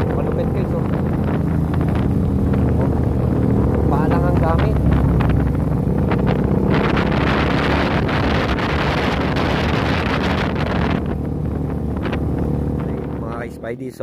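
A small motorcycle engine putters and revs close by.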